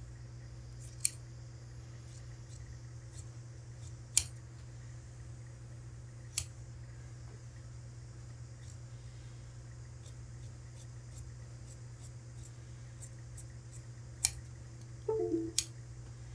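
Large scissors snip through thick cloth.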